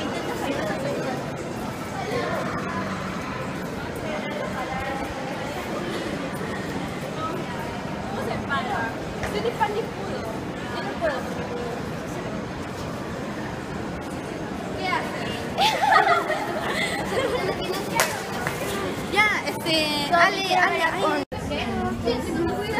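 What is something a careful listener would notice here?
Crowd chatter murmurs through a large echoing hall.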